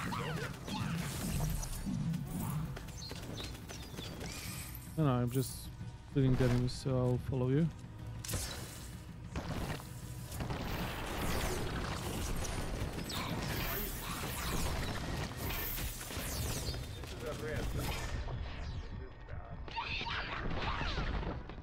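Spells burst and explode with loud impacts.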